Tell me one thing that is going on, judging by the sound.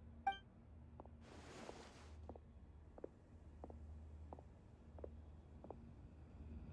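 Footsteps echo slowly on a stone floor in a large hall.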